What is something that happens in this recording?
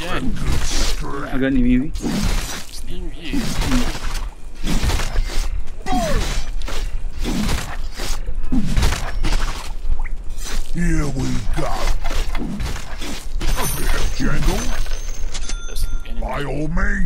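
Weapons clash and strike repeatedly in a fast fight.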